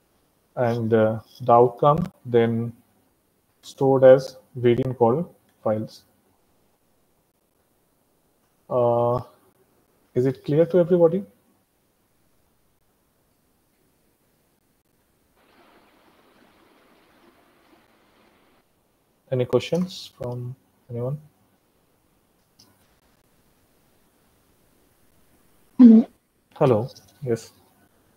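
A young man talks calmly through an online call, with pauses.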